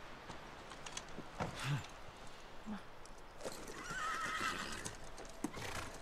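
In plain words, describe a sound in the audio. Horse hooves clop slowly on soft ground.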